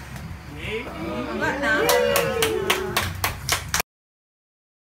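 A group of people sing together loudly and cheerfully close by.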